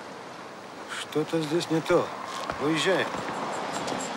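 A second man answers in a low voice nearby.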